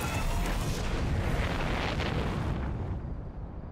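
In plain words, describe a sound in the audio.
A spacecraft engine roars loudly, then fades.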